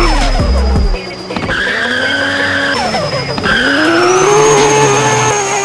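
A car engine revs high and rises and falls in pitch as the car drifts.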